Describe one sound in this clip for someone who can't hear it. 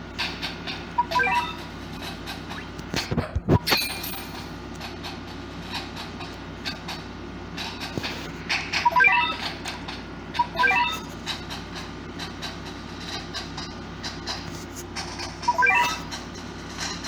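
Short bright chimes from a video game sound as menus change.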